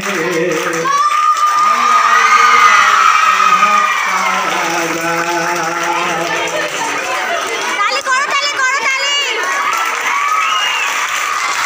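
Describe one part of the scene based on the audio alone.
A crowd of young girls sings along.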